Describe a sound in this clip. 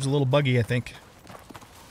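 A man speaks briefly and casually into a close microphone.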